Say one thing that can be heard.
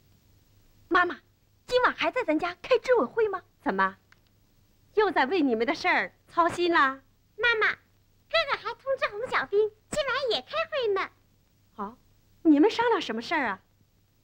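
A young girl speaks cheerfully, close by.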